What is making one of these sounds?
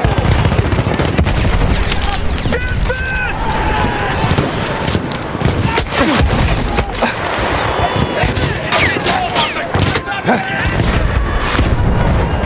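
Explosions rumble and boom in the distance.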